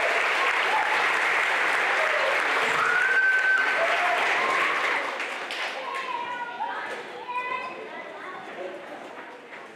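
A crowd of children chatters and calls out in a large echoing hall.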